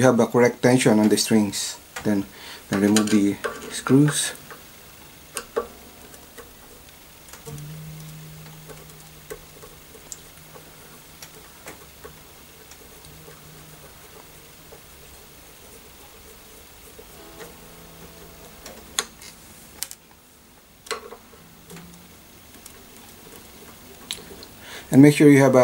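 A screwdriver clicks and scrapes against metal tuning pegs.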